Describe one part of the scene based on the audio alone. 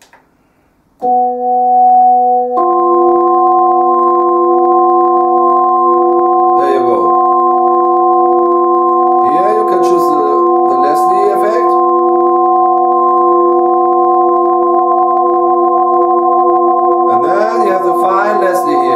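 A man plays long, sustained chords on an electric keyboard.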